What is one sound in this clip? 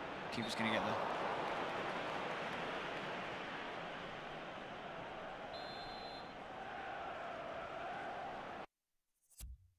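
A stadium crowd roars and cheers steadily.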